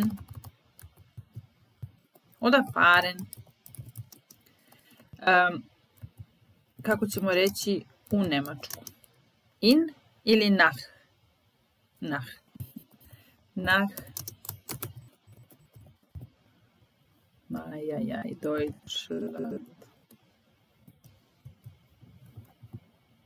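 Computer keys click as someone types.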